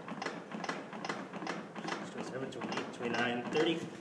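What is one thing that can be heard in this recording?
A plastic training manikin clicks rhythmically under quick chest compressions.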